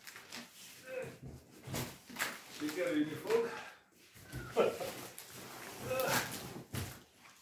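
A cardboard box scrapes and rustles as it is moved nearby.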